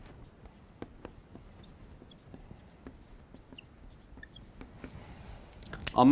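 A marker squeaks and taps softly on a whiteboard.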